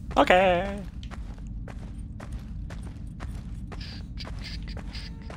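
Footsteps tap on a hard floor at a steady pace.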